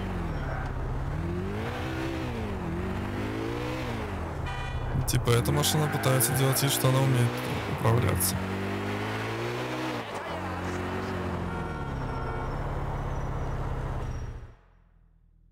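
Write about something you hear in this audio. A car engine hums as a car drives along.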